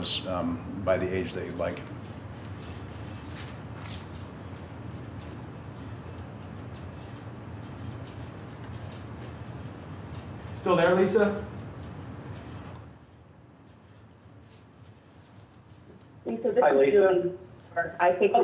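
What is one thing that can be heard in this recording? A man speaks briefly into a microphone in a short, halting way.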